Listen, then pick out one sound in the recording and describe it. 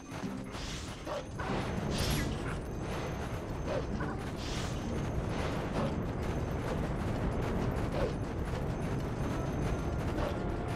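Paws crunch quickly through deep snow.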